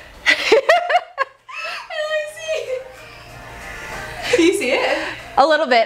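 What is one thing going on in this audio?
A second young woman talks cheerfully close by.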